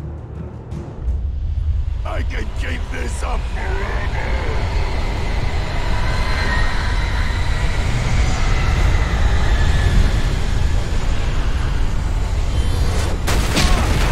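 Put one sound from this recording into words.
Strong wind roars steadily.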